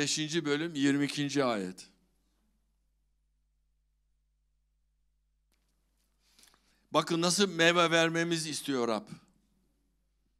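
An elderly man speaks calmly into a microphone, heard through loudspeakers.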